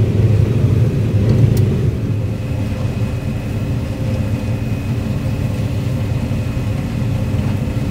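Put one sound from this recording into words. A heavy engine drones steadily, heard from inside a cab.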